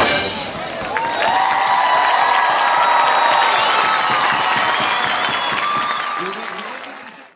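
A marching band plays a long, held chord outdoors, which slowly fades.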